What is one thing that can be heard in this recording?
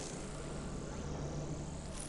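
A burst of energy crackles and hums.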